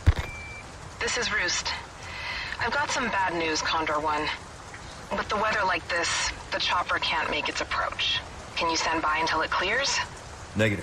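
A young woman speaks over a radio.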